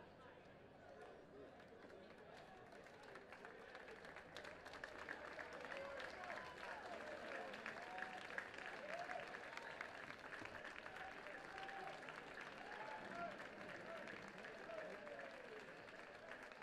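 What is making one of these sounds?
A crowd of young men cheers and shouts outdoors.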